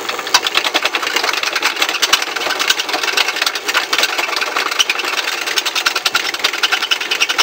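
A motor-driven sanding machine runs with a steady, crackling whir.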